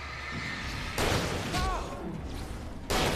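A flash grenade bursts with a roaring blast.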